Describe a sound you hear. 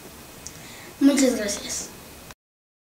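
A young girl speaks briefly and calmly, close by.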